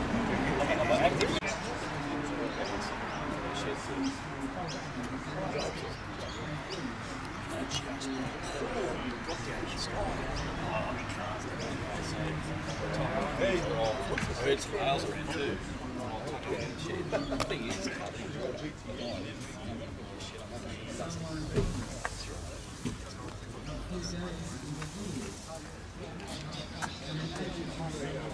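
Adult men chat casually nearby outdoors.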